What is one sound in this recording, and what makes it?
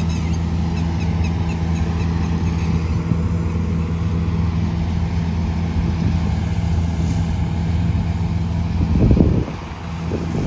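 A combine harvester's engine rumbles steadily close by.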